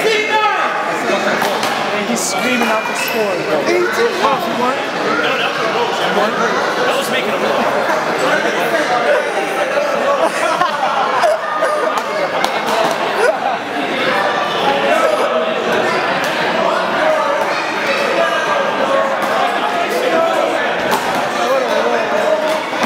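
A rubber ball smacks against a wall.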